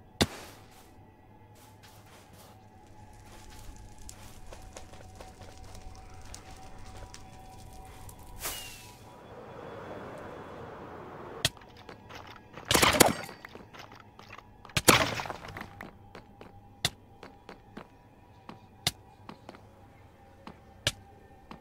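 Footsteps crunch steadily on hard ground.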